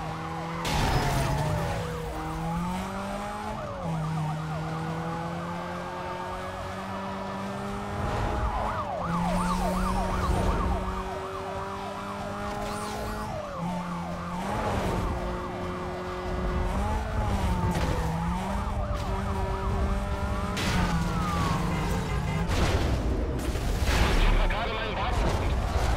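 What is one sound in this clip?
Police sirens wail close by.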